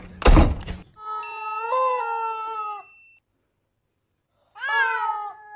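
A rubber chicken toy squeaks with long, wailing honks.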